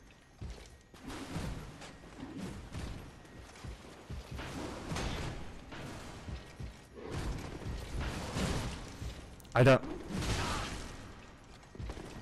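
Swords clash against a metal shield.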